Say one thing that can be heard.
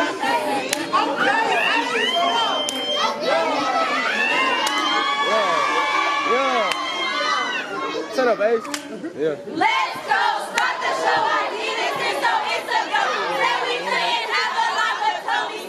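A crowd cheers and shrieks.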